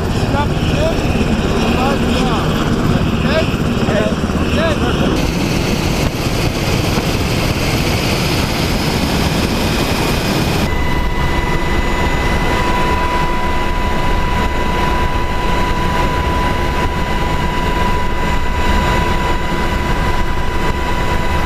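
A helicopter's engine and rotor roar loudly and steadily.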